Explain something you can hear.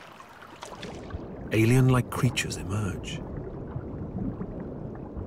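Shallow water laps and gurgles close by, heard muffled from under the surface.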